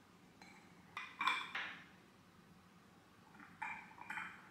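A candle drops into a glass holder with a light tap.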